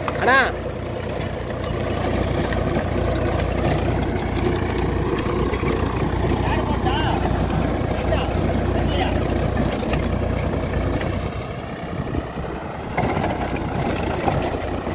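A rotary tiller churns through soil.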